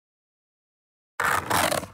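A plastic toy bus is set down on a hard surface.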